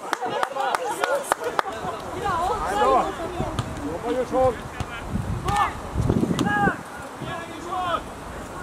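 Men shout and call out to each other across an open outdoor field.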